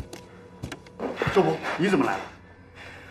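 A young woman speaks up in surprise, close by.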